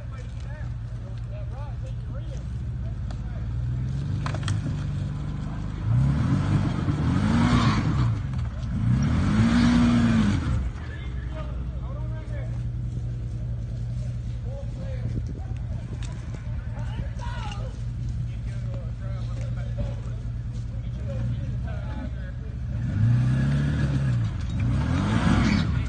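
An off-road vehicle's engine idles and revs hard in bursts outdoors.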